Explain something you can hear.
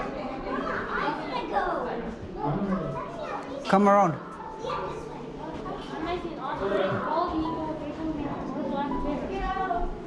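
Several adults and children talk and chatter nearby in an echoing hall.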